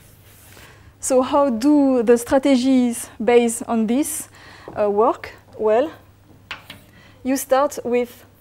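A woman speaks calmly through a microphone, as if lecturing.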